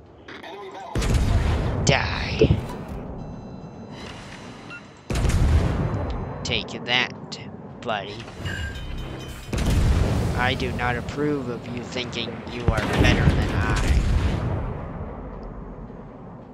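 Heavy guns boom and shells explode.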